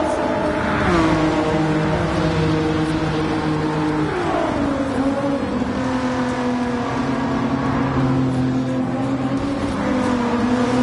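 A high-revving sports car engine roars, its pitch shifting through gear changes.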